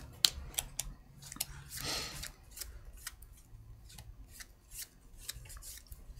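Plastic game pieces click and tap on a table.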